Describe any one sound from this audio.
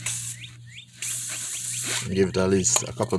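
An aerosol can sprays in a short hissing burst.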